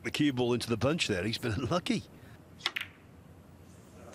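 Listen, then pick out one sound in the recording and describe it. Snooker balls knock together with hard clicks.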